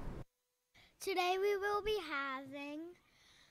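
A young girl speaks slowly into a microphone.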